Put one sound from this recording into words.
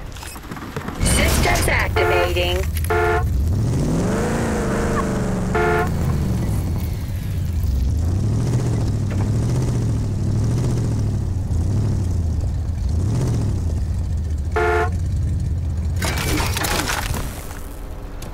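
A vehicle engine roars and revs up and down as it drives.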